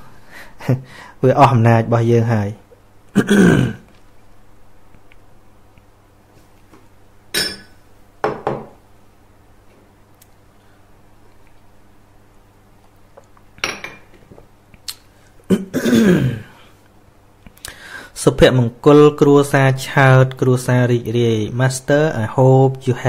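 An elderly man speaks with feeling, close to a microphone, in bursts with long pauses.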